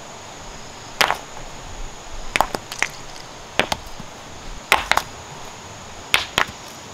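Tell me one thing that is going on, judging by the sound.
Stones thud and clack as they drop onto rocky ground.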